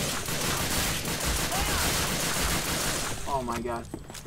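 Gunfire rattles loudly in rapid bursts.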